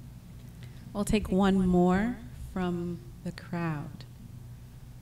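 A woman speaks cheerfully through a microphone.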